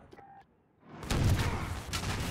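A vehicle explodes with a loud, rumbling blast.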